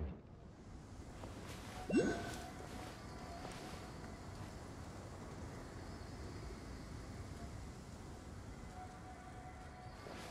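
Footsteps patter on rocky ground.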